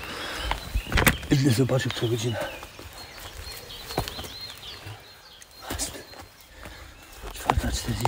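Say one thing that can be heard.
Footsteps crunch on twigs and leaves.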